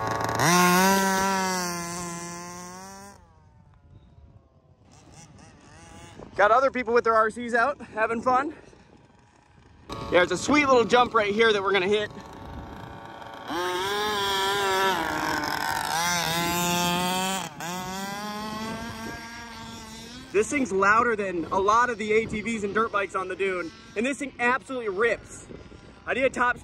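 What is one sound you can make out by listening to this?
A small electric motor of a toy car whines and revs up and down.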